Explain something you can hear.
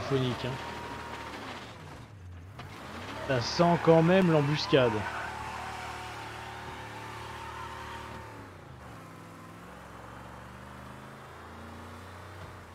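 A car engine hums and revs as the car drives along a street.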